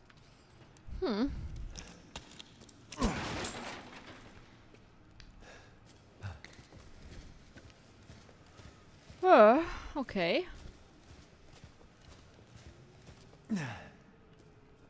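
A young woman speaks now and then into a close microphone.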